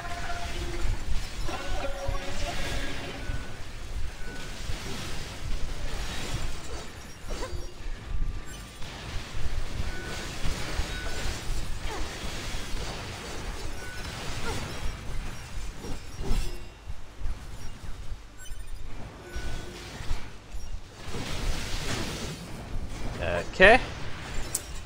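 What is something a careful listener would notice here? Explosions boom and crackle in quick bursts.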